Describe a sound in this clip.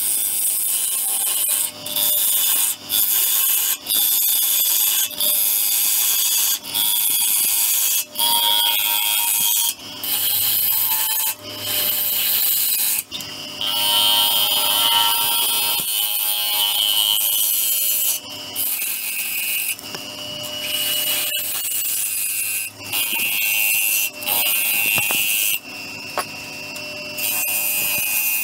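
A gouge scrapes and hisses against spinning wood in loud bursts.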